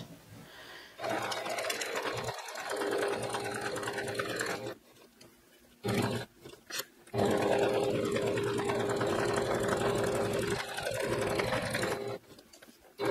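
A sewing machine hums and stitches in steady bursts.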